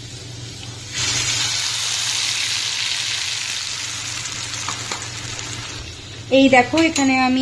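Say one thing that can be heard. Batter hisses and sizzles loudly as it is poured into hot oil.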